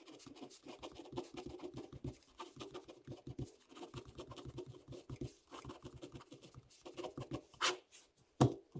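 A pen scratches across paper.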